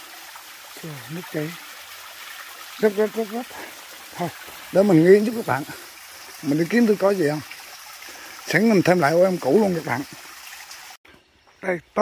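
A small stream of water trickles and splashes steadily over rocks.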